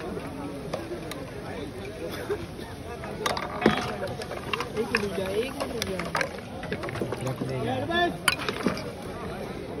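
A metal ladle clinks against steel pots.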